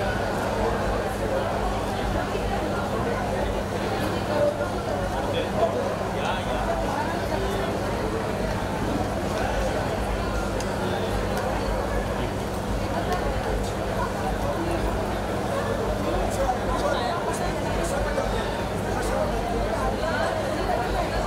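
A crowd of men and women chatter and talk over each other.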